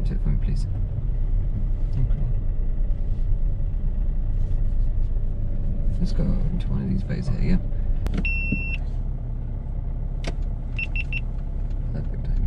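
A car engine hums low and steady from inside the car.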